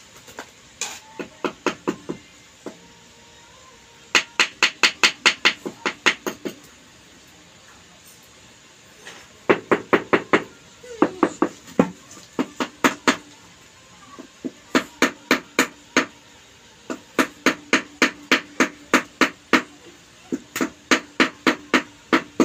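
A wooden handle taps a tile in quick bursts of sharp knocks.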